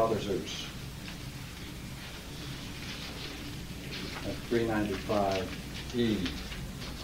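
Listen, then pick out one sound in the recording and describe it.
An elderly man reads aloud slowly and calmly.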